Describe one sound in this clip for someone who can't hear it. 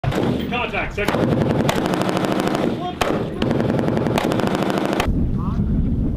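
Rifles fire in rapid bursts outdoors.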